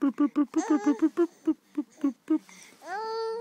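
A baby laughs in short bursts, close by.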